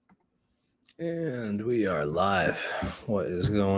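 A man speaks with animation, close to a microphone as if on an online call.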